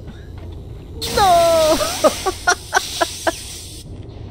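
Electricity crackles and sizzles loudly.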